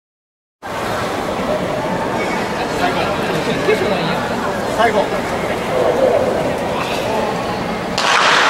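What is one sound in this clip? A scattered crowd chatters and calls out across a large open stadium.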